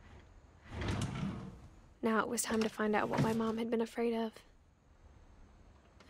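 A small wooden hatch creaks open.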